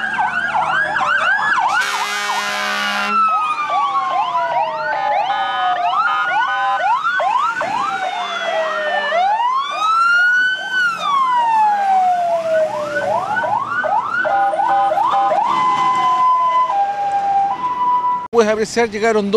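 Fire truck sirens wail and whoop loudly, rising and falling.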